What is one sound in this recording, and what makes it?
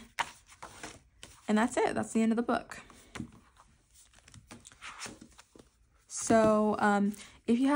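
Paper pages rustle softly as a notebook is handled.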